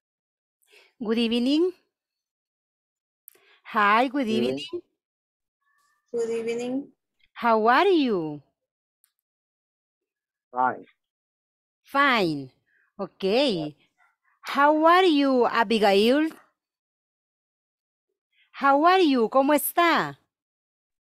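An older woman speaks with animation through a headset microphone on an online call.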